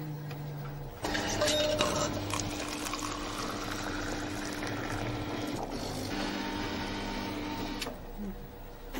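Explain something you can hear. Liquid trickles into a paper cup.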